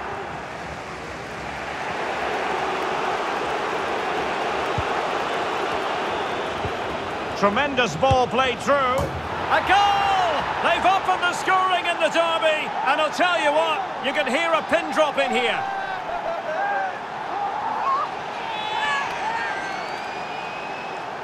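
A stadium crowd roars.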